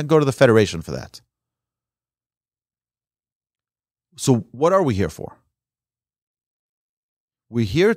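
A man speaks calmly and close to a microphone, with long pauses.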